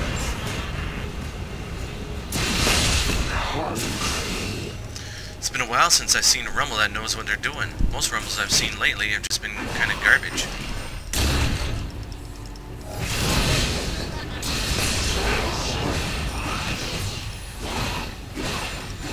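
Game spell effects crackle and burst during a battle.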